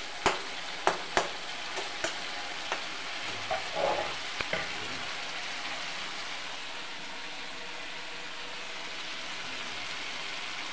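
Food sizzles softly in a hot pan.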